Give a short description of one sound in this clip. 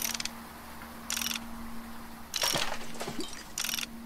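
A crate breaks apart with a crash.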